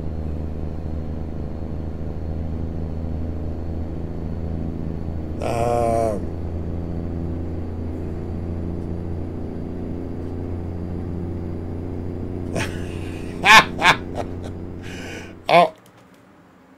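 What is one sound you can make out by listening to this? A truck engine hums steadily, then cuts out.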